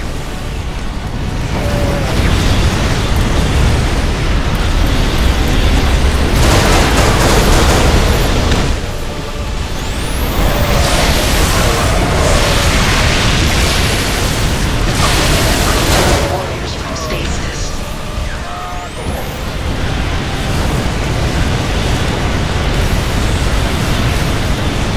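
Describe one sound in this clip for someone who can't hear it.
Explosions boom and rumble in a loud, chaotic battle.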